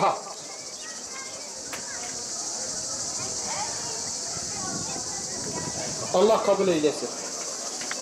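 A crowd of elderly men chatters in a murmur outdoors.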